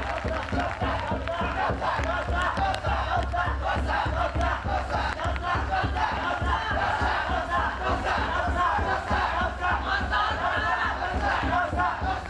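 A group of men chant loudly together in a steady rhythm outdoors.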